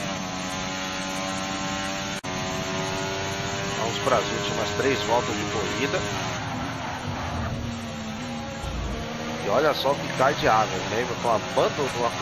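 A racing car engine whines steadily at high revs.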